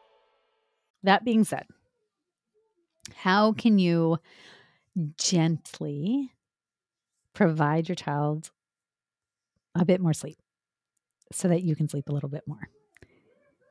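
A woman speaks calmly and closely into a microphone.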